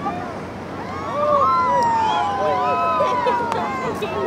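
A young woman shrieks and cries out with excitement nearby.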